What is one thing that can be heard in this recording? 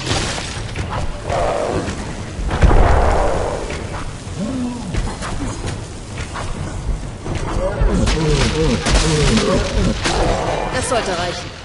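Spells burst with loud whooshes and blasts.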